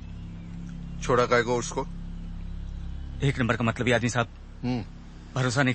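A middle-aged man speaks in a low, menacing voice close by.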